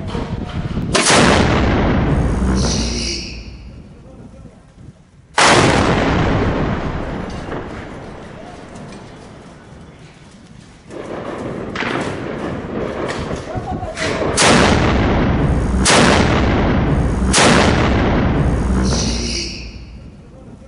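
A large artillery gun fires with a deafening boom that rumbles and echoes away.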